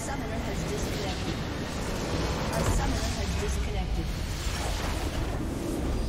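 A large structure explodes with a deep booming roar.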